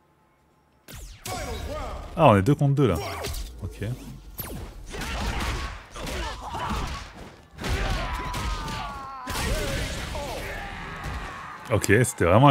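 Punches and kicks thud and smack in a video game fight.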